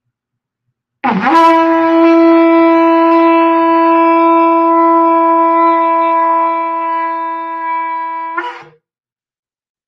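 A man blows a ram's horn in one long, steady, blaring note.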